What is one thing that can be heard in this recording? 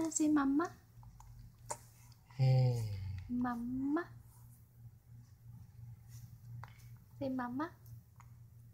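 A baby coos and babbles up close.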